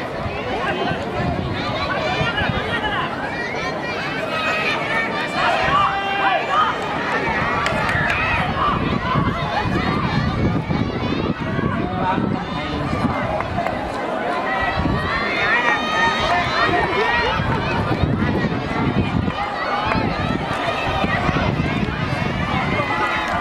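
A large crowd of children shouts and cheers outdoors.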